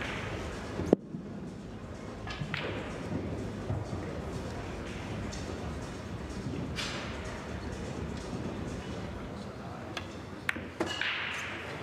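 Pool balls click against each other across the table.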